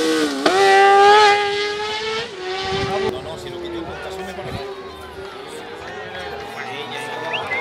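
A small race car engine revs loudly close by, then fades away into the distance.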